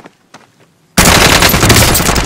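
Rapid automatic gunfire blasts loudly.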